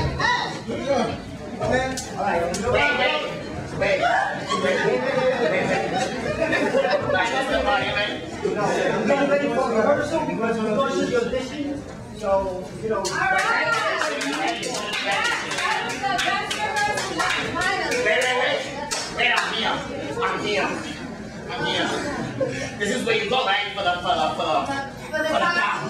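Several men talk loudly over one another.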